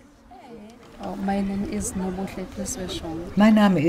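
A young woman talks calmly up close, outdoors.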